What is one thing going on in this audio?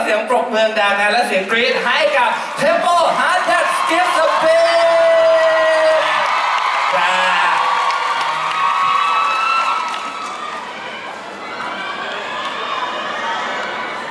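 A crowd of fans screams and cheers loudly.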